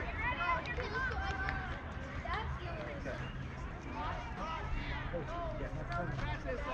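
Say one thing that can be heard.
Children call out and chatter at a distance outdoors.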